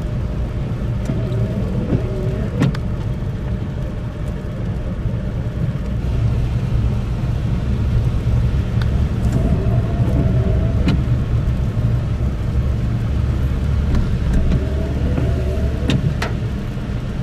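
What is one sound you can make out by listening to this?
A windshield wiper sweeps across the glass.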